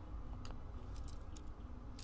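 A lock clicks as a pick turns in it.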